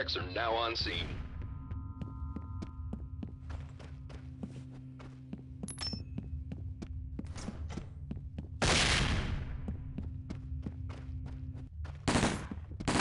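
Footsteps tap steadily on a hard floor indoors.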